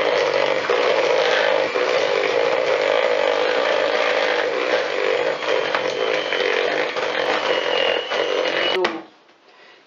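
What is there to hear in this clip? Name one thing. An electric hand mixer whirs, beating batter in a plastic bowl.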